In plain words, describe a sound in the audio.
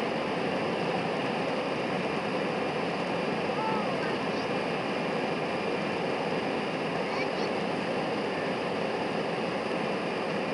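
Jet engines roar steadily as an airliner speeds down a runway.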